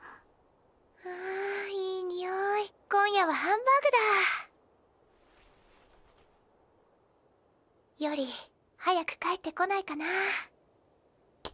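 A woman calls out cheerfully and brightly, then speaks wistfully.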